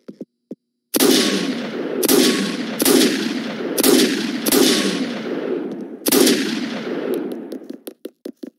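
A rifle fires loud shots with a booming echo.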